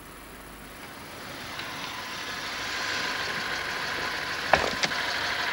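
A car approaches and pulls up, its tyres hissing on a wet road.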